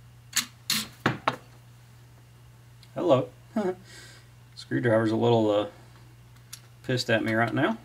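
A screwdriver clicks and taps against metal fittings.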